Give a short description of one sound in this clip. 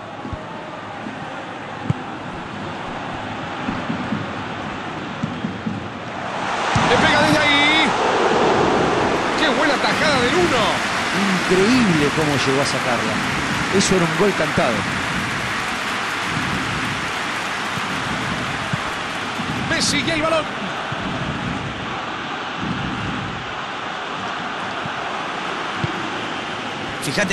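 A large stadium crowd cheers and chants steadily, swelling louder partway through.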